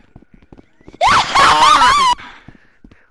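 A monster screeches loudly up close.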